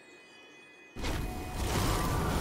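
A magic spell bursts with a loud rushing whoosh.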